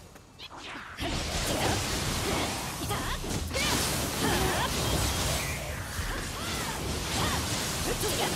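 Blades clash and strike in a video game battle.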